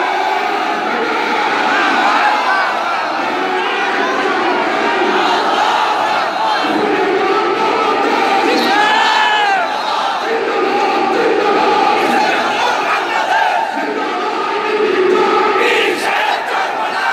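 A large crowd of men chants slogans loudly in an echoing hall.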